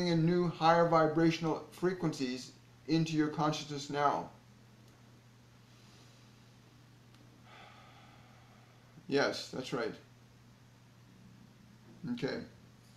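A middle-aged man speaks calmly and clearly into a close microphone, with pauses.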